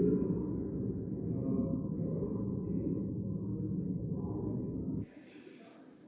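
A low murmur of many people talking fills a large hall.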